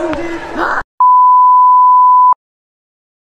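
A steady high test beep sounds.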